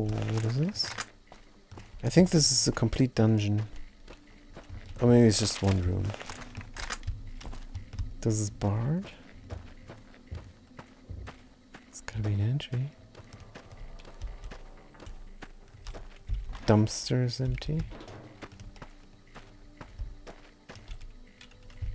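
Footsteps crunch on gravel and wooden boards.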